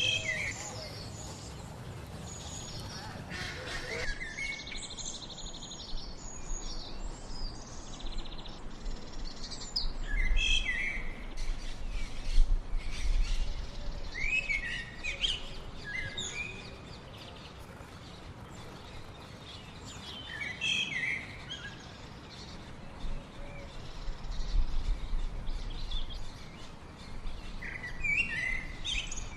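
Small birds chirp and sing in short bursts nearby.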